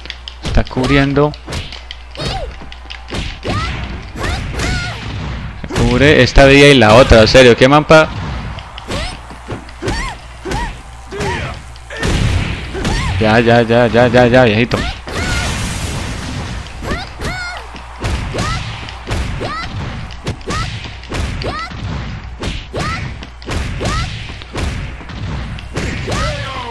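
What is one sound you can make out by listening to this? Punches and kicks land with sharp thuds and smacks.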